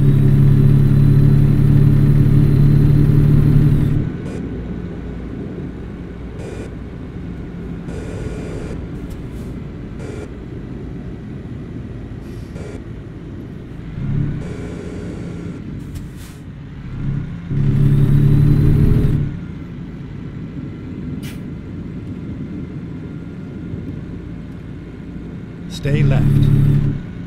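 A truck engine rumbles steadily while driving, growing louder at times.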